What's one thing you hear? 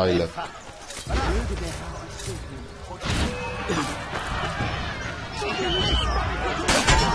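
Men grunt and shout while fighting.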